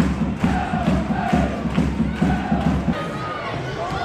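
A large crowd chants rhythmically outdoors.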